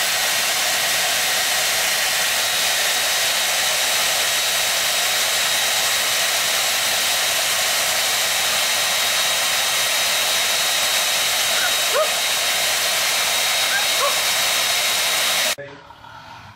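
A hair dryer blows with a loud, steady roar.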